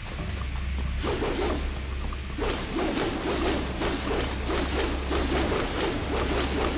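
Water splashes rapidly with running footsteps.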